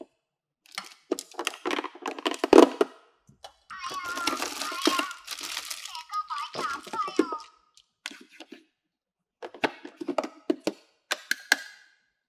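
Plastic toy parts click and clatter against each other.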